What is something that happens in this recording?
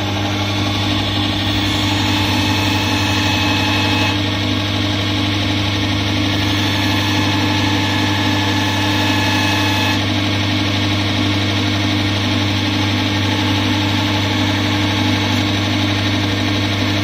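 A bench grinder motor hums steadily.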